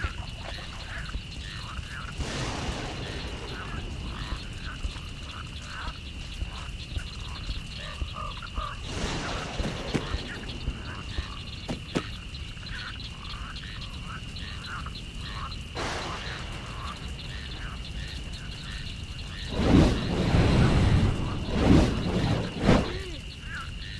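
Fire crackles and roars steadily.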